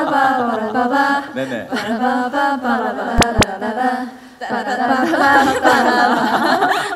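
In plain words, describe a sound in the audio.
Young women laugh through microphones.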